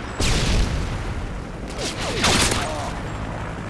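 A silenced gun fires quick bursts of shots.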